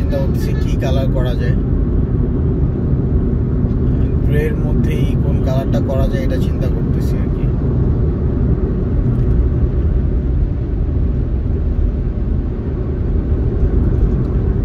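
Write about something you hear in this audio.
A car engine rumbles steadily from inside the car as it drives along a road.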